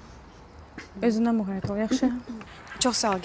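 Another young woman speaks calmly, close by.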